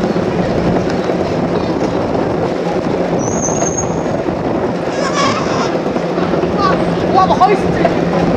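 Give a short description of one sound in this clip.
A scooter engine hums steadily close by.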